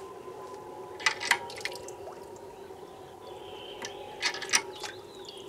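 A metal washstand tap clanks.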